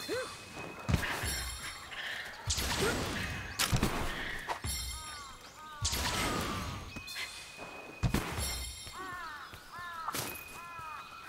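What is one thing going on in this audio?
Weapon swings whoosh and strike with sharp thuds.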